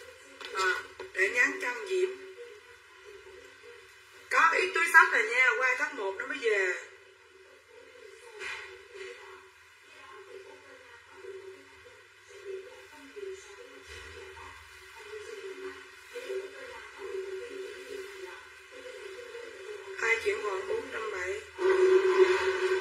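A middle-aged woman talks close by.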